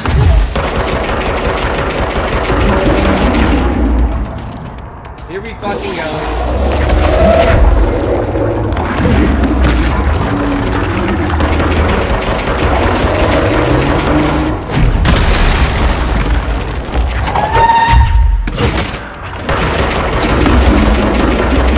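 Blasts of energy crackle and burst in a game.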